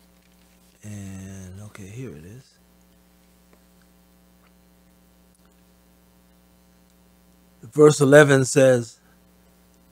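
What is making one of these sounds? A man speaks slowly into a microphone in short bursts.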